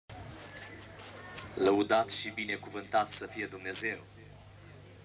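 A man speaks with animation into a microphone over loudspeakers.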